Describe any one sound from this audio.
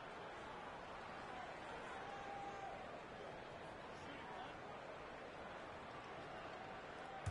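A large arena crowd murmurs and cheers steadily.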